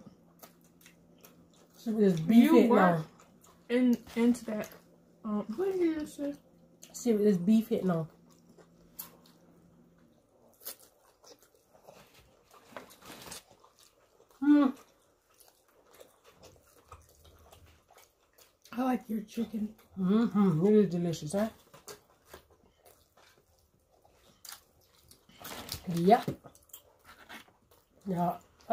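A woman chews and slurps noodles close to a microphone.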